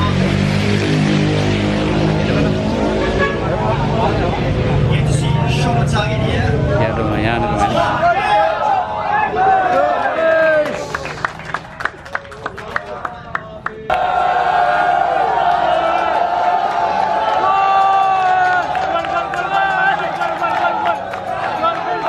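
A crowd of young men chatters loudly outdoors.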